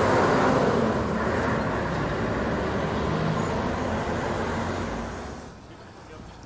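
A diesel fire truck drives along a street.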